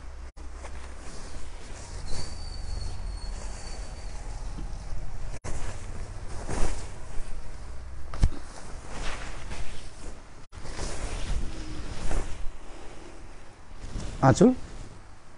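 Silk fabric rustles and swishes as it is unfolded and shaken.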